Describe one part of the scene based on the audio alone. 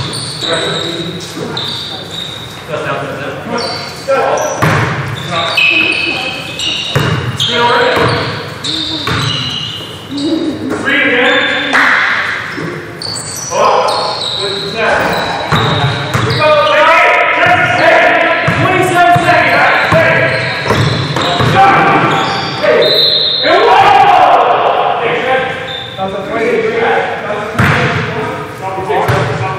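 Sneakers squeak sharply on a wooden court, in a large echoing gym.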